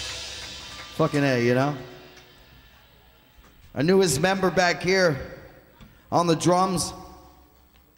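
A man sings loudly into a microphone in short phrases.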